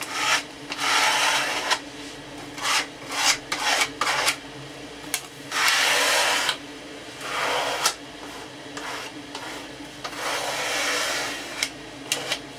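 Hands rub and brush across a wooden block with a dry scraping sound.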